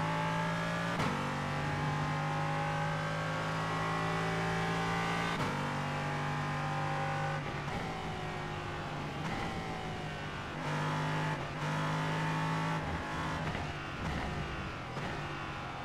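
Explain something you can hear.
Gear changes snap through sharply several times.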